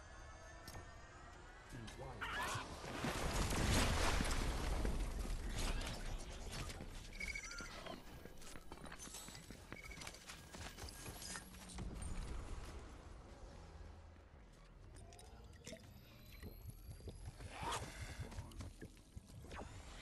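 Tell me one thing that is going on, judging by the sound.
Game footsteps patter quickly over stone and grass.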